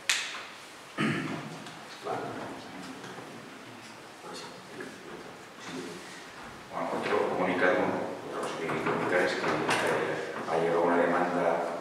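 A man speaks calmly into a microphone in a room with a slight echo.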